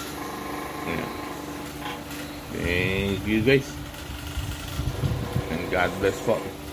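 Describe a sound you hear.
An electric fan hums steadily.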